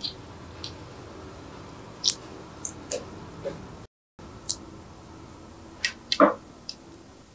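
Soft slime squishes and snaps as fingers stretch it.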